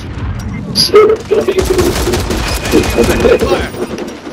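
Gunshots fire in quick bursts close by.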